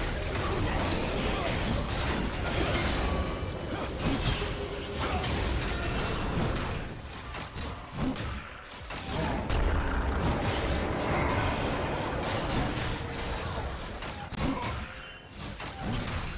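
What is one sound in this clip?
Video game spell effects crackle and clash in a fast battle.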